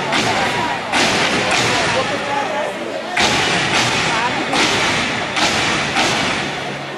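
A group of dancers stomp and clap in unison in a large echoing hall.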